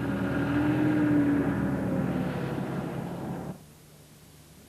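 An armoured vehicle's engine rumbles and whines as the vehicle drives.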